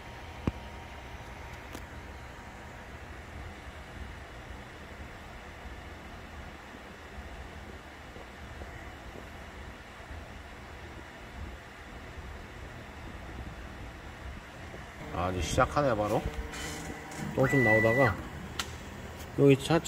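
A machine hums steadily at low pitch.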